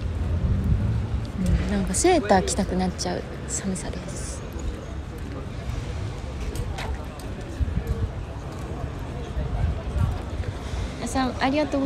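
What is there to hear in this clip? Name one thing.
A crowd of young adults talks and calls out at a distance outdoors.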